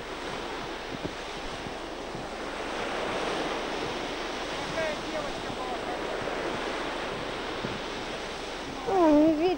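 Small waves wash steadily onto a beach.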